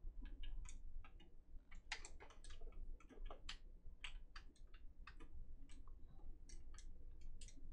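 A young girl speaks quietly.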